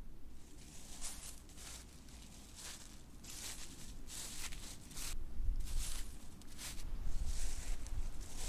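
Leafy stems brush and swish against a man's legs.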